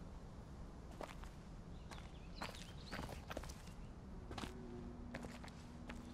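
Footsteps crunch on rough ground.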